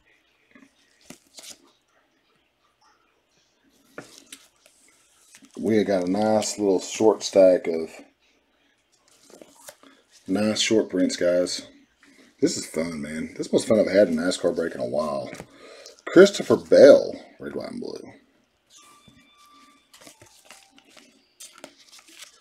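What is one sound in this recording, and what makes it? Trading cards rustle and tap as gloved hands handle them.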